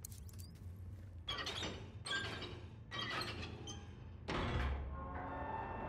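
A heavy metal door creaks and grinds open.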